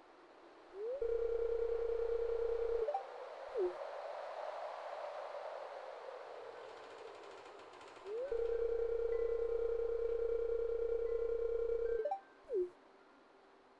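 A video game's dialogue sound plays as a steady, buzzing tone that rises in at the start and cuts off with a short chirp.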